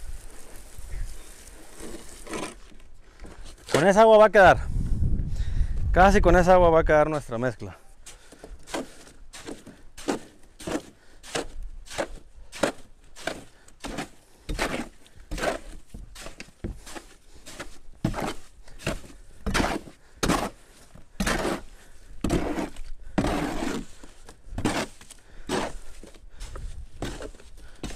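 A hoe scrapes and slaps through wet concrete in a tub in a steady rhythm.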